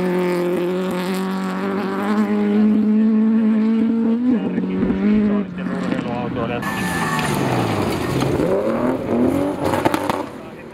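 Gravel sprays and rattles under spinning tyres.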